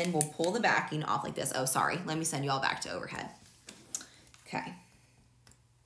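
A young woman speaks calmly close to a microphone.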